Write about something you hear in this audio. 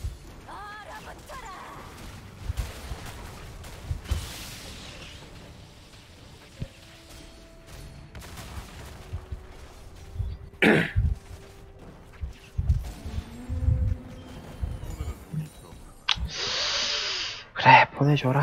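Game spell effects whoosh and crackle during a battle.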